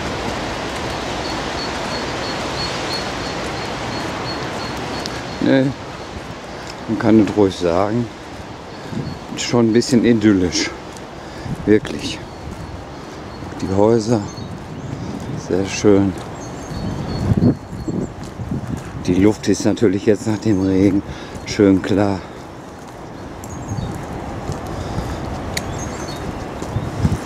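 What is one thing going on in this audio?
Footsteps walk along a wet paved path outdoors.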